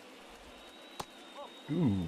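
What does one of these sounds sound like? A ball pops into a catcher's mitt.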